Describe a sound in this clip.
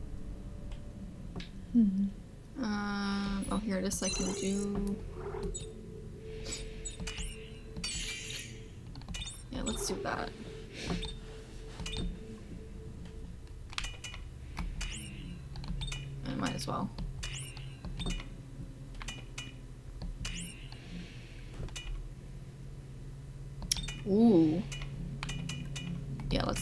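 Short electronic menu blips and clicks sound again and again as options are selected.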